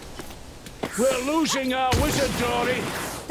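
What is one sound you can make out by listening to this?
An explosion booms with a fiery roar.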